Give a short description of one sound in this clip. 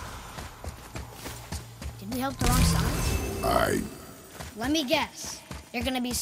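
Heavy footsteps run across stone.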